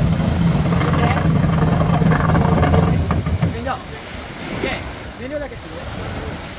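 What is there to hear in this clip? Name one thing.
Small waves lap in shallow water.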